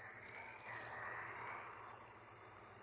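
A paper shredder whirs as it shreds paper.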